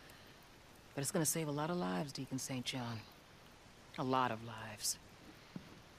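A young woman speaks quietly and earnestly, close by.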